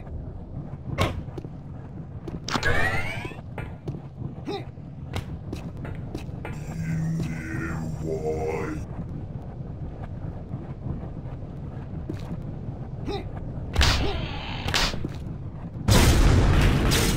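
Molten lava rumbles low and steadily.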